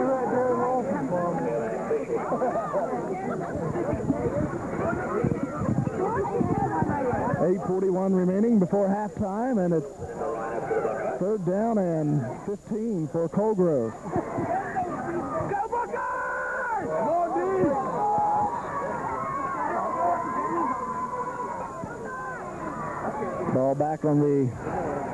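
A large crowd of spectators chatters and calls out nearby.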